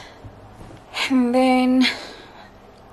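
A young woman hums a long, steady note.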